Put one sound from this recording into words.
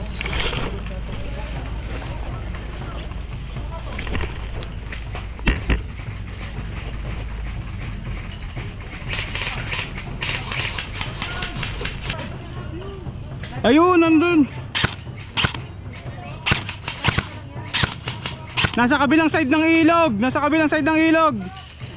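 Leaves and undergrowth rustle as people push through dense plants.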